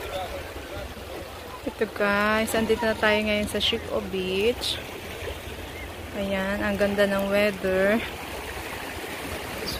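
Calm sea water laps gently against rocks.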